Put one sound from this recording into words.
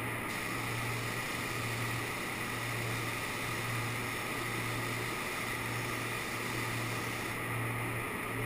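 A spray gun hisses steadily as it sprays paint.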